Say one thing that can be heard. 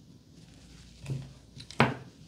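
A comb clatters down onto a table.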